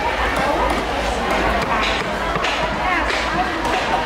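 A cleaver chops on a wooden block.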